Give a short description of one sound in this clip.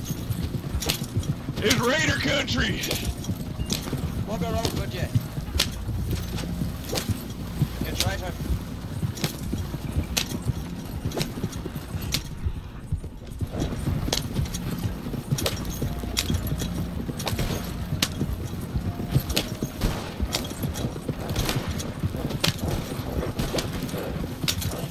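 A wooden wagon rattles and creaks over a dirt track.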